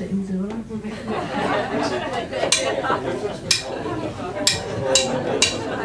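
Drums and cymbals are struck in a steady beat.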